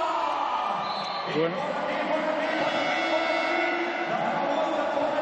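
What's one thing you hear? A large crowd chants and cheers in a big echoing arena.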